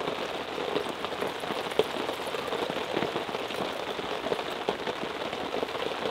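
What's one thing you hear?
Water pours from a plastic bottle.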